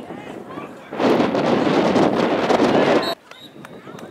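A burst of loud cheering rises from the crowd.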